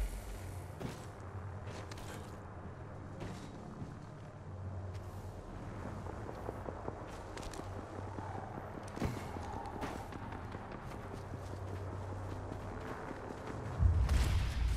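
A metal cable hums and whirs steadily as someone rides along it.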